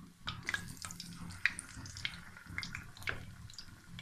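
Batter drips into hot oil with sharp spatters.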